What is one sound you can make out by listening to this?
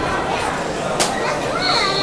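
A karate uniform snaps sharply with a fast strike.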